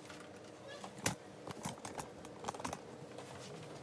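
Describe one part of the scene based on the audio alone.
Knocks and clatters sound as a tripod is handled close by.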